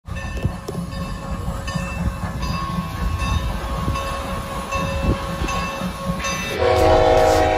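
A steam locomotive chugs and puffs steadily.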